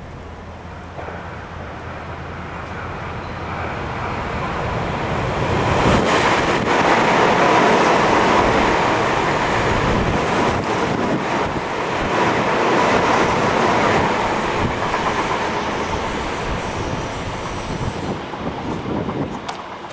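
An electric commuter train approaches and rushes past at speed through a station, then fades into the distance.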